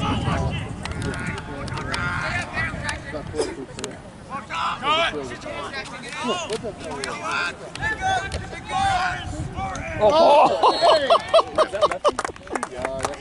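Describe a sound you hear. Young men shout to each other outdoors, some close and some far off.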